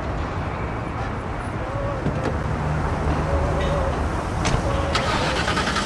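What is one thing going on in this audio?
A car engine idles.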